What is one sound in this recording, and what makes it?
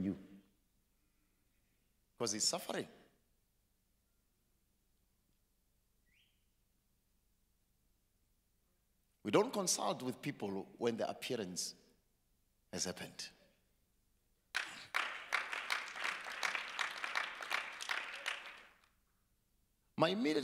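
A man speaks loudly into a microphone with long pauses, heard through loudspeakers in a large hall.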